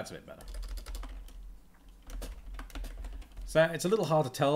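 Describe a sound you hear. Keys clatter on a keyboard.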